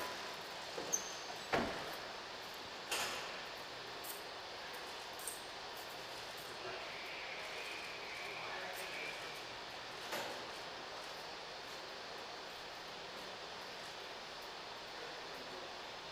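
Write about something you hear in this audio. Footsteps tap on a hard floor in an echoing corridor.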